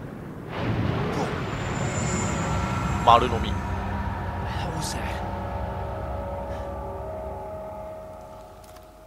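A large creature lets out a deep, drawn-out roar.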